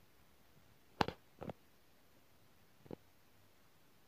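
A plastic button clicks a few times.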